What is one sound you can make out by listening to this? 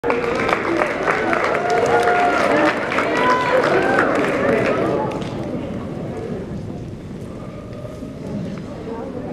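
Bare feet patter and slide across a wooden floor in a large echoing hall.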